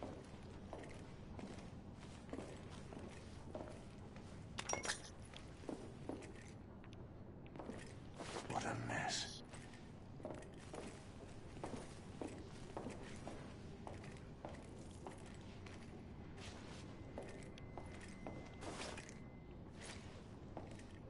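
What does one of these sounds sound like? Footsteps thud on a hard floor.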